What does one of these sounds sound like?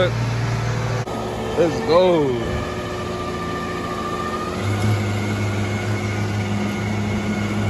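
A car engine idles with a steady low hum.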